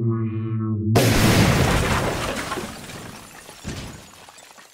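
A heavy metal figure crashes to the ground.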